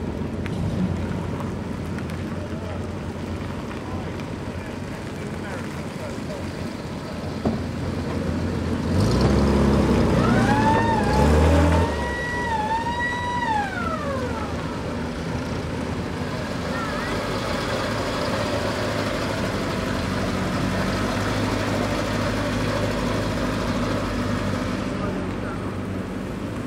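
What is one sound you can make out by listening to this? Old vehicle engines rumble and chug as they drive slowly past, close by.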